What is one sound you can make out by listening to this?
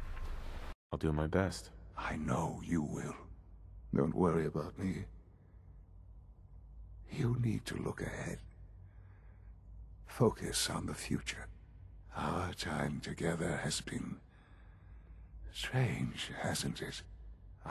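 An elderly man speaks weakly and slowly, close by.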